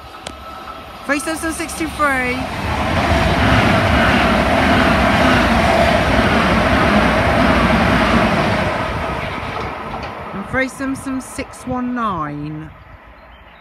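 A train horn sounds two-tone blasts.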